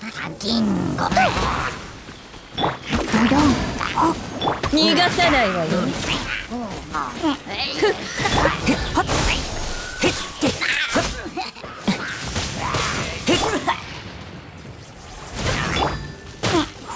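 Explosive magic blasts and weapon strikes crash again and again in a fast game battle.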